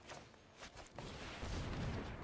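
A magical whoosh sweeps past with a soft shimmer.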